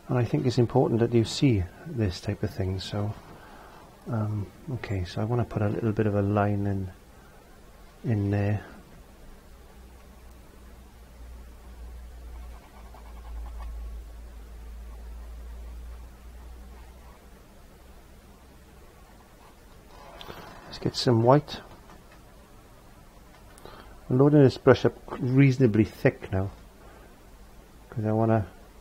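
A middle-aged man talks calmly and close to a microphone, with pauses.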